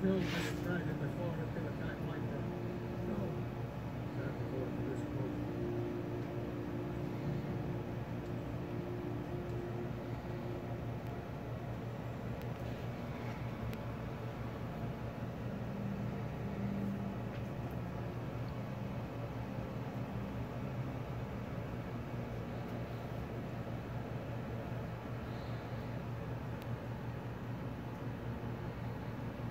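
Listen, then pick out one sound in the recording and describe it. A cat purrs steadily up close.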